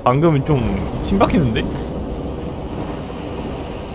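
Footsteps crunch on snow.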